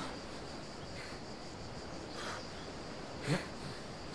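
Hands grab and scrape on rough rock.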